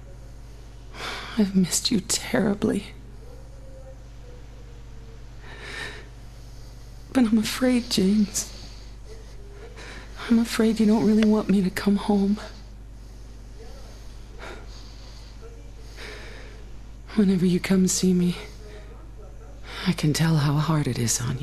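A young man speaks close to a microphone, in short bursts with pauses.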